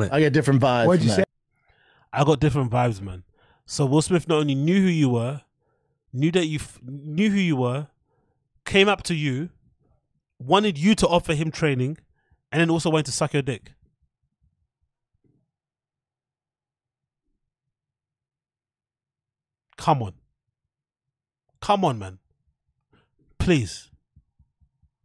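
A man speaks with animation close to a microphone, in short bursts.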